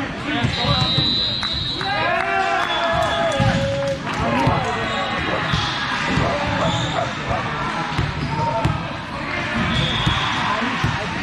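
Shoes squeak sharply on a wooden floor.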